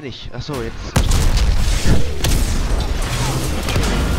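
A huge explosion booms and roars.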